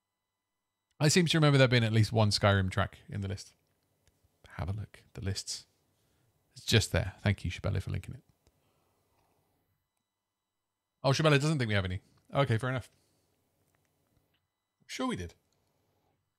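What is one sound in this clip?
A man talks calmly and close into a microphone, with pauses.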